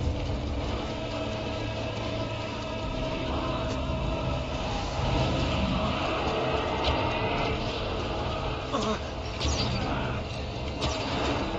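A bowstring creaks as a bow is drawn.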